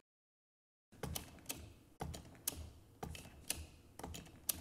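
A hand pump squeaks and clicks in a steady rhythm.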